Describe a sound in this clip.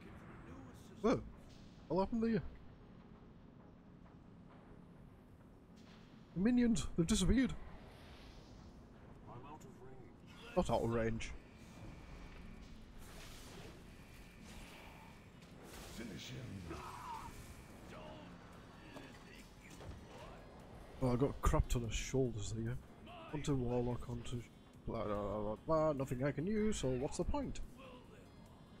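A man talks casually and with animation, close to a microphone.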